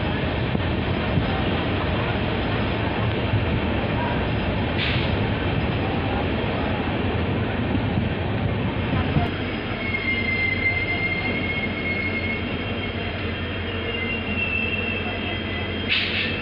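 A train rumbles and rattles steadily along the tracks.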